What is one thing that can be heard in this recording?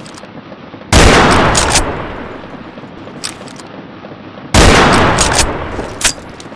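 A sniper rifle fires loud single shots that ring out.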